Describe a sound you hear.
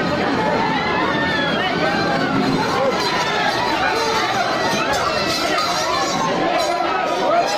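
A large crowd chatters and shouts loudly all around, outdoors.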